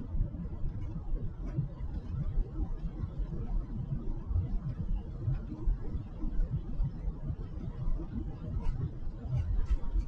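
A car drives along a wet road with a low, steady rumble.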